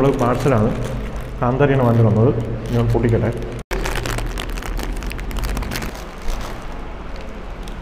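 Foil crinkles as it is unwrapped.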